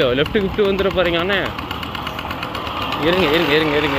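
A two-wheel tractor engine chugs nearby.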